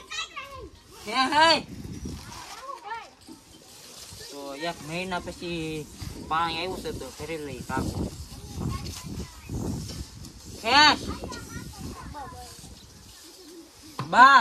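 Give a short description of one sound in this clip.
A boy talks with animation close by.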